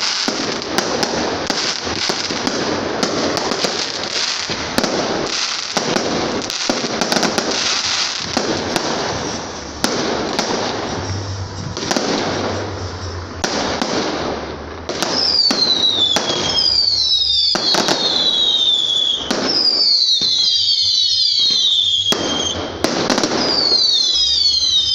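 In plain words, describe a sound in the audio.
Fireworks bang and pop overhead, one after another.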